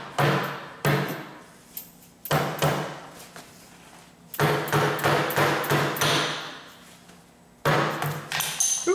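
A plastic mallet strikes a metal vise in sharp, ringing blows, again and again.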